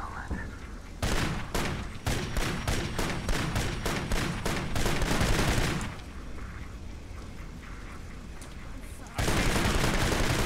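Rifles fire in rapid bursts close by.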